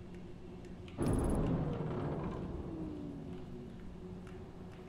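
A spaceship crashes with a loud bang and a ringing rumble that slowly fades.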